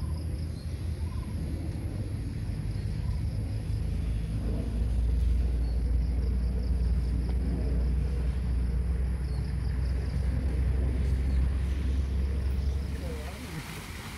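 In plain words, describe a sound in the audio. Wind rumbles loudly across the microphone outdoors.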